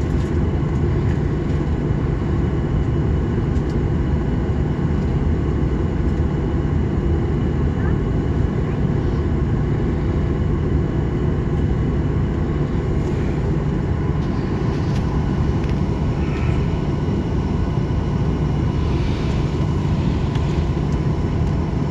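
Jet engines roar steadily with a deep rumble.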